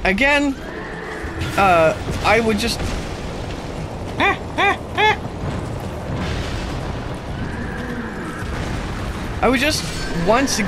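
Heavy game combat sounds rumble and clash.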